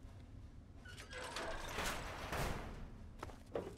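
A heavy metal door grinds and hisses open.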